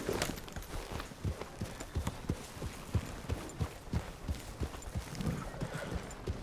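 Horse hooves thud at an even trot on soft ground.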